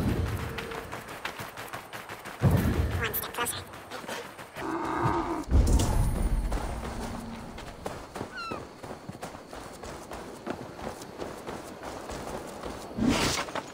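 Footsteps run quickly over dirt and wooden boards.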